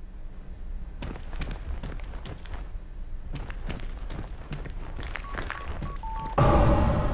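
Footsteps walk slowly across a hard floor.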